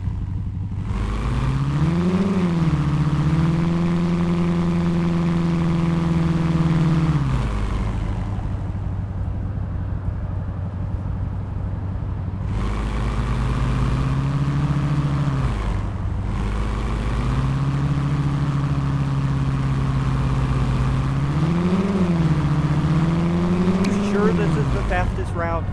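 A car engine revs up and settles as it drives.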